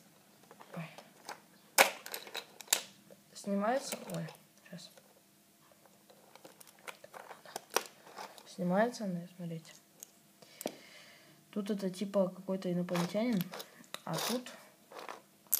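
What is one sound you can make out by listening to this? Plastic toy bricks click and rattle as a hand handles them.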